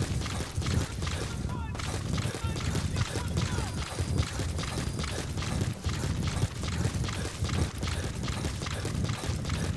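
Boots pound quickly over rough ground.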